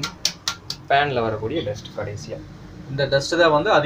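Small seeds pour and rattle into a metal pan.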